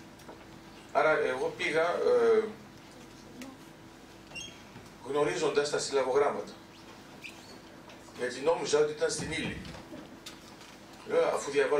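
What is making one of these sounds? A middle-aged man speaks calmly into a microphone, pausing between phrases, in a large echoing hall.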